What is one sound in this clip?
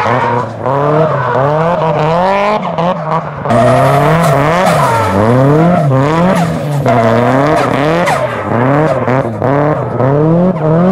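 A car engine revs hard, rising and falling again and again.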